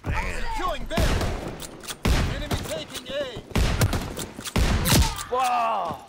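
A shotgun fires loud blasts several times.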